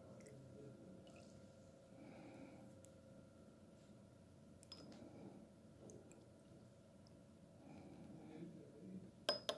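Liquid squirts softly from a syringe into a glass jar.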